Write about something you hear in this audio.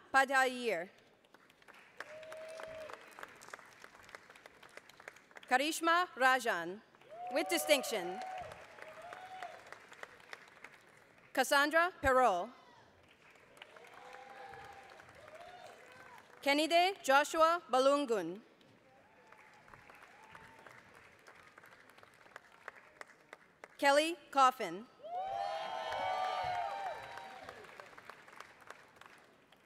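An audience claps in a large echoing hall.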